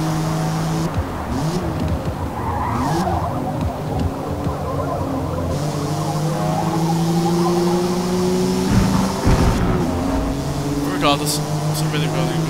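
A car's exhaust pops and crackles as the engine slows.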